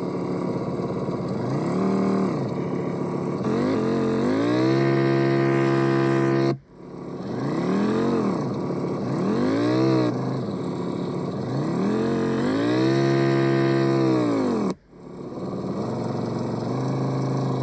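A motorbike engine revs up and down, with short pauses.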